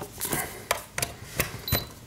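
A plug scrapes and clicks into a socket.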